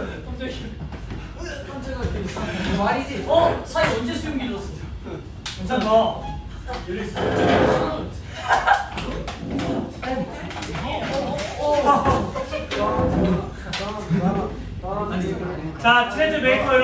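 Several young men talk and call out over one another.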